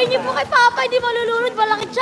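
Water splashes and laps in a pool.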